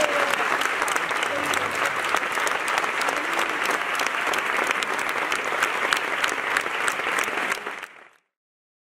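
A crowd claps its hands.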